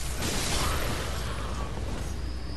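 A blade slashes and strikes with wet thuds.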